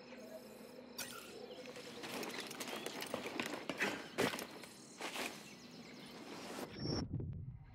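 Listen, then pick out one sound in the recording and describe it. Footsteps thud quickly across grass and metal planks.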